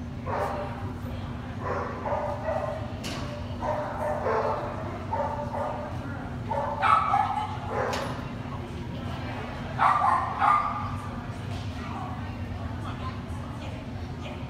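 A man calls out commands to a dog with animation in an echoing hall.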